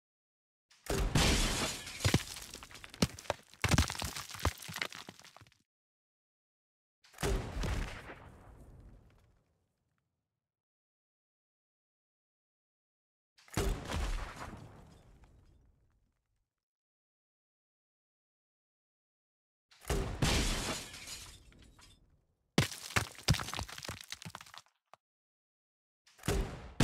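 A gun fires loud shots in bursts, each blast rumbling and echoing away.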